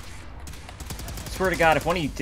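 An energy gun fires with a buzzing zap.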